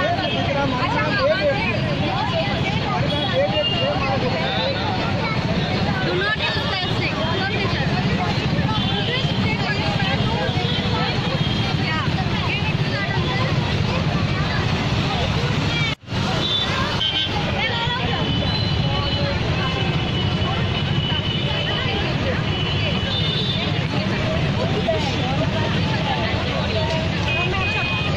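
Scooter and motorbike engines idle and rumble close by.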